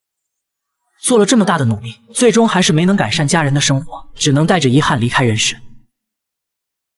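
A man speaks slowly and gravely, close up.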